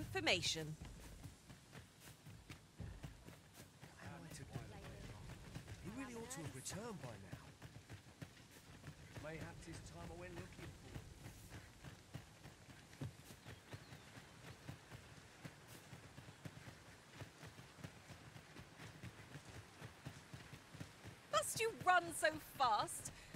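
Footsteps run quickly over a dirt path.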